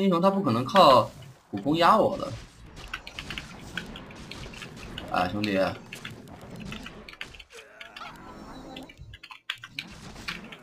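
Game spell effects zap and crackle amid clashing weapons.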